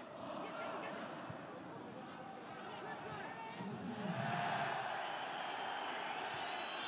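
A large stadium crowd roars and chants steadily outdoors.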